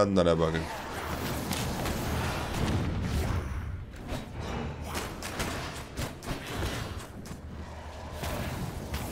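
Weapon blows clash and thud in quick succession.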